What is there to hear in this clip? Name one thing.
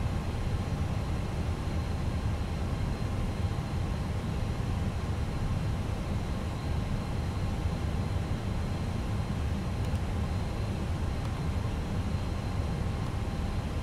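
A steady low jet engine drone rumbles inside an aircraft cockpit.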